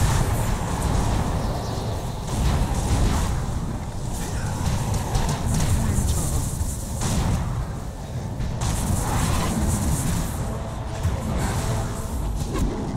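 Game spells crackle and blast in quick bursts.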